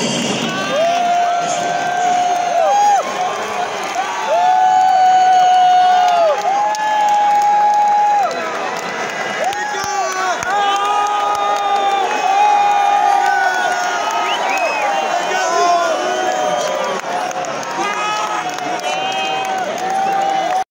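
A crowd sings along loudly in a large echoing hall.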